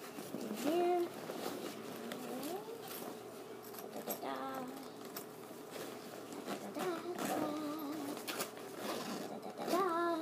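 Fabric rustles and crinkles as a bag is handled.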